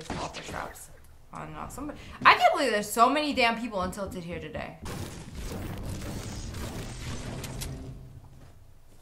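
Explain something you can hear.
A young woman talks animatedly into a microphone.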